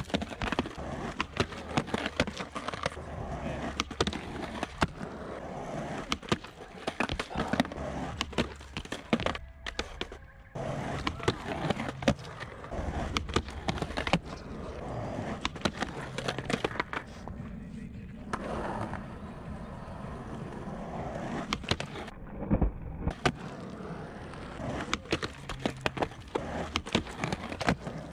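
Skateboard wheels roll and rumble over concrete outdoors.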